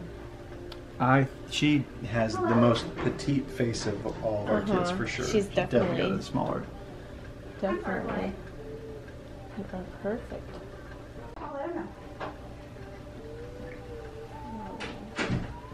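A young woman talks and laughs happily up close.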